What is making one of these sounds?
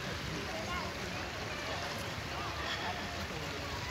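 Children splash through shallow flowing water.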